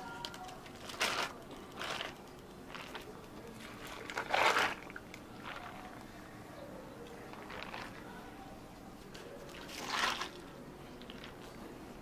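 Juice pours and splashes into cups of ice.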